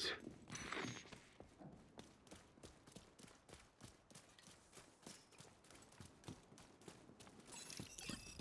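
Footsteps tread quickly and evenly on a hard floor.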